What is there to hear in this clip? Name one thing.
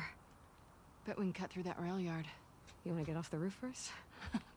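A second young woman answers calmly.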